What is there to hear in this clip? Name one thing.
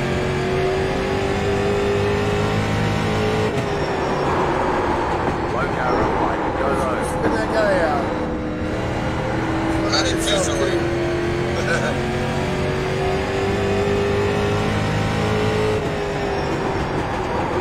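A race car engine drones steadily, rising and falling in pitch through the turns.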